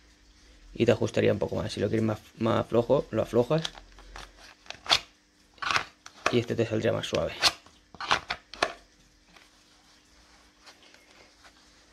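A plastic gun slides and clicks into a stiff holster.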